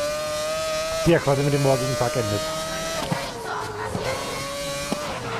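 A racing car engine screams at high revs, shifting gears with sharp drops in pitch.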